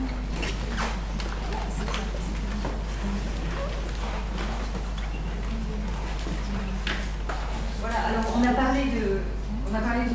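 People murmur and chat quietly in a room with some echo.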